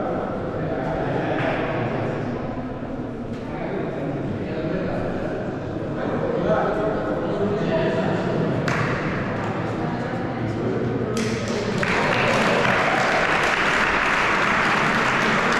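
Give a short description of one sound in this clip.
A group of young players talk and call out together in a large echoing hall.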